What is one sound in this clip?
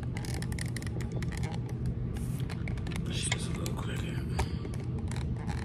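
Fingers brush and tap against a phone close by.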